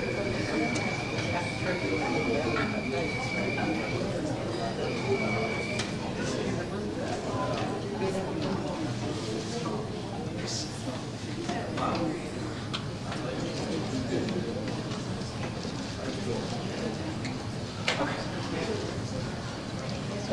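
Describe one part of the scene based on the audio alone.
A man speaks steadily through a microphone in an echoing hall.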